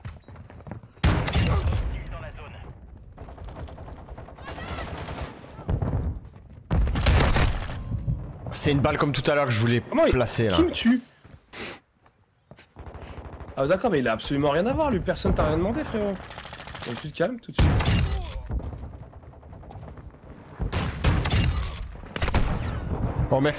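Rifle shots fire with loud sharp bangs.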